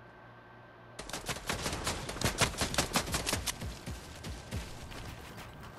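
Wooden building pieces clatter rapidly into place.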